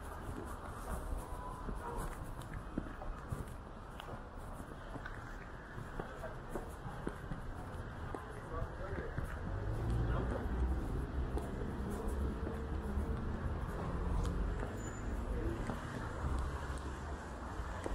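Footsteps tap on wet pavement.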